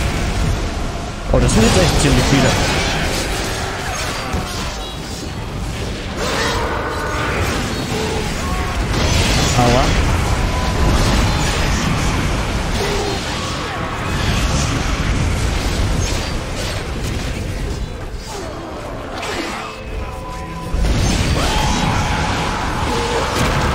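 Swords clash and slash in a chaotic battle.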